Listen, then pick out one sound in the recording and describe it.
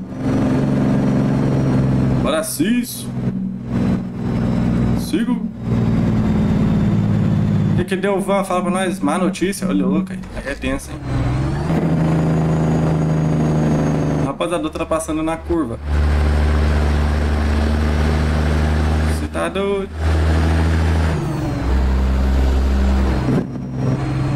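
A truck engine drones steadily, rising and falling in pitch as it shifts.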